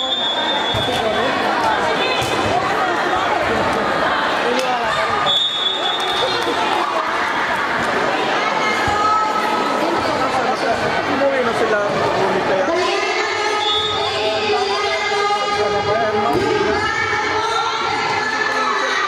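A crowd of young women and girls shouts and cheers in a large echoing hall.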